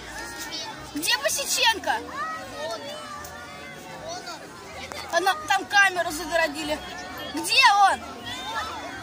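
Men and women in the crowd shout and cheer loudly.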